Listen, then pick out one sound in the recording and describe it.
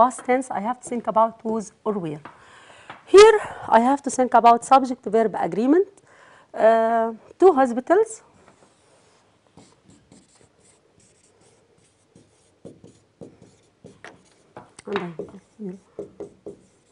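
A woman speaks clearly and with animation through a microphone.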